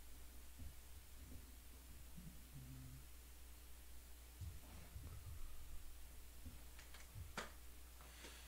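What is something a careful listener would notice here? Small plastic pieces click as a hand handles them.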